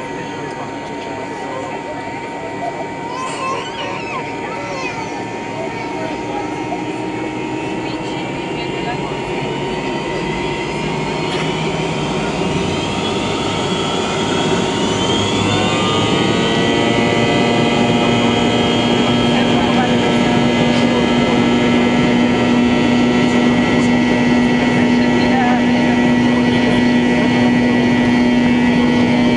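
Jet engines whine and roar steadily, rising in pitch as they spool up.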